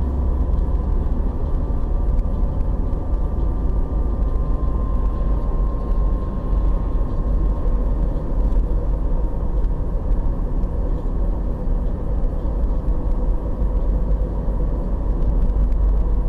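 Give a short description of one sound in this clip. A car drives along a paved road, heard from inside with engine and road rumble.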